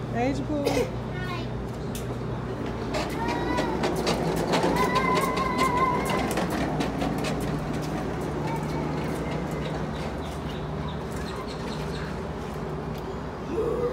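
Footsteps patter on a concrete walkway.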